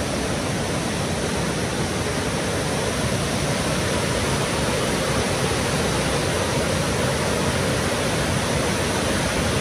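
Water rushes loudly over rocks close by.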